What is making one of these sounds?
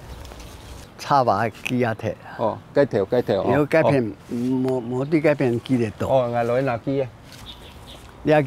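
A man speaks calmly nearby, answering.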